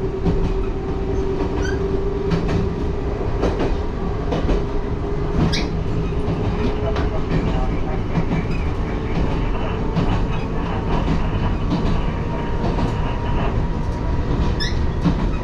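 A train rumbles steadily along the track, heard from inside the cab.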